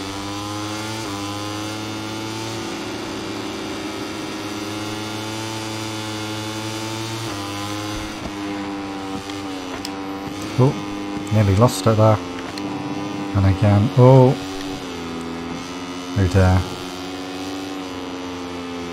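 A motorcycle engine drones steadily at high revs, its pitch shifting as it changes gear.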